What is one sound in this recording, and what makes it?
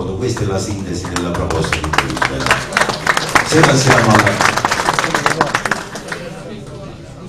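Several men talk over each other loudly.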